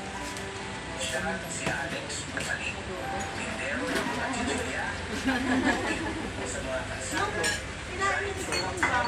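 Several men and women chatter nearby in a busy room.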